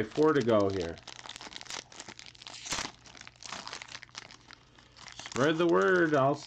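A plastic wrapper crinkles and rustles as it is torn open.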